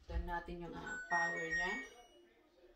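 A washing machine's control panel beeps.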